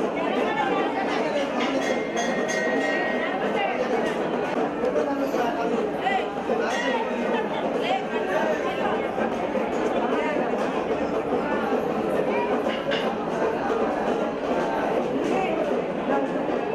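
A crowd of women talk over one another loudly and with agitation, close by.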